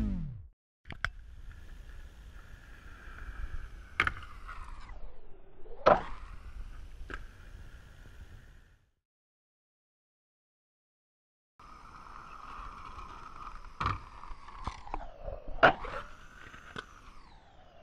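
A skateboard clacks and slaps against a wooden ledge and the ground.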